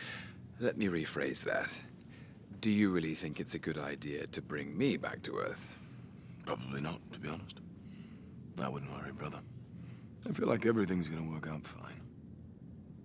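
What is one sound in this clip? A man speaks calmly and closely, with pauses.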